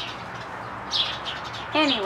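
A duck quacks nearby.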